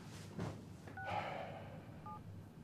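A phone gives short electronic beeps.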